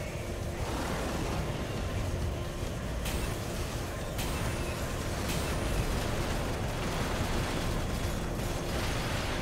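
Guns fire rapid shots.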